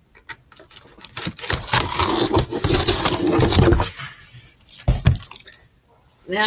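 Cardboard rustles and scrapes close by.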